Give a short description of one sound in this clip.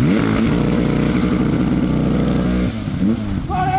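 A rally car engine roars and revs hard close by.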